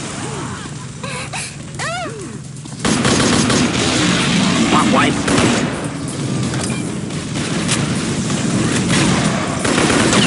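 An explosion roars and crackles with flames.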